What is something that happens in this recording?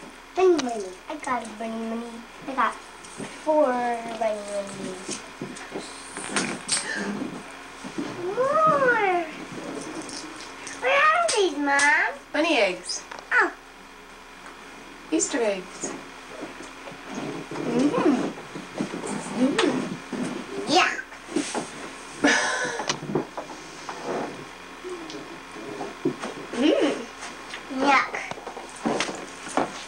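A young boy talks and exclaims excitedly nearby.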